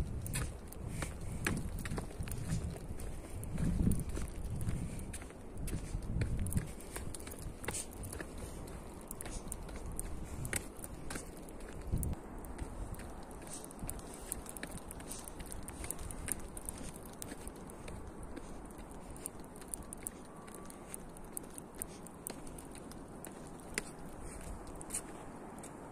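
Footsteps tap on stone steps going downhill.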